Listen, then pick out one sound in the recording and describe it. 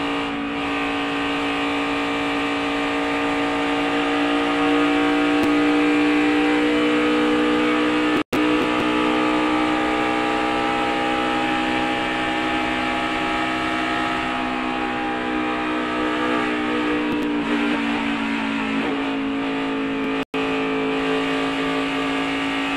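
A race car engine roars loudly at high speed, its pitch steady and sometimes shifting.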